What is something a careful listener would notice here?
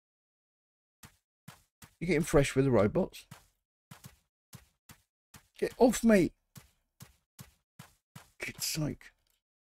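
Light footsteps tap steadily on grass.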